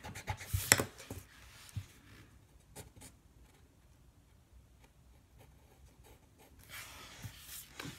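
A pencil scratches and scrapes on paper.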